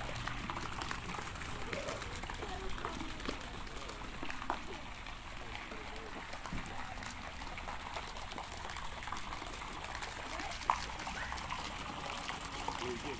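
Fountain jets splash steadily into a pool of water.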